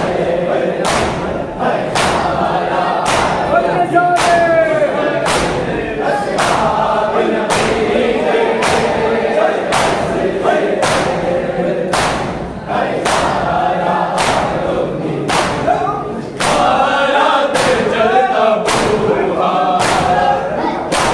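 A crowd of men chant loudly together.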